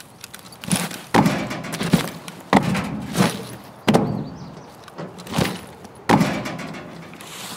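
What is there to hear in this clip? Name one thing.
A person climbs over a wall with heavy thuds and scrapes.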